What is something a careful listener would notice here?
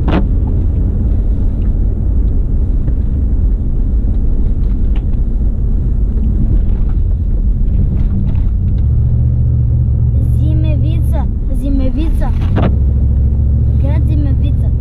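A car engine rumbles steadily at low speed.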